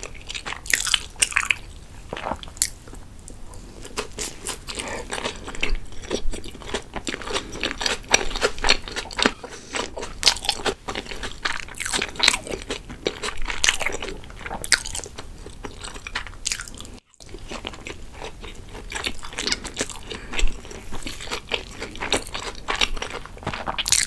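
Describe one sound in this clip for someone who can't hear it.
A young woman chews food wetly and close up.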